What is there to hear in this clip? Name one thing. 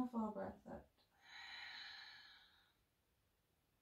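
A woman breathes out slowly and audibly.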